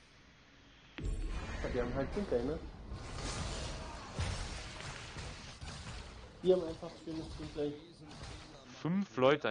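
Video game combat effects whoosh and crash during a battle.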